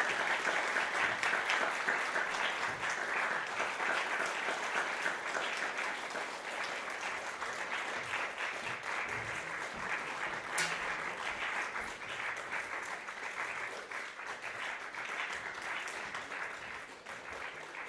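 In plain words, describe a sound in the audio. An audience claps and applauds steadily in a hall.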